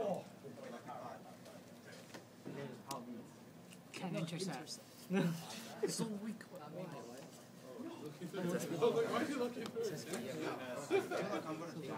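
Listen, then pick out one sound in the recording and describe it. Playing cards slide and tap softly on a play mat.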